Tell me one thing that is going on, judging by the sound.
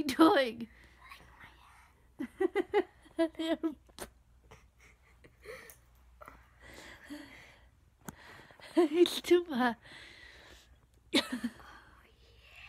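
A woman speaks close by in a playful voice.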